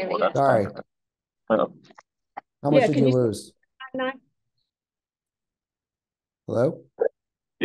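A middle-aged man speaks calmly over an online call, in short bursts.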